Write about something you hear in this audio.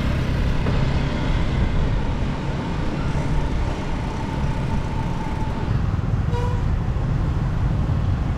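Motorbike engines hum as they pass nearby.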